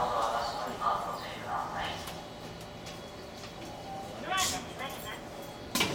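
A train hums quietly while standing still.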